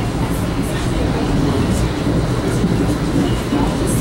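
Another train rushes past close by with a whoosh.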